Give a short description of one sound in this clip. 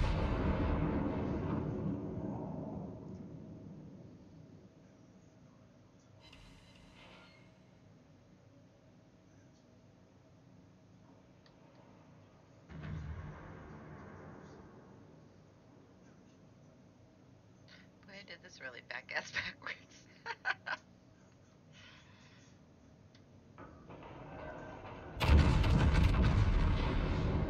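Heavy gunfire booms and rumbles.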